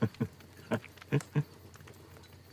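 A middle-aged man laughs softly nearby.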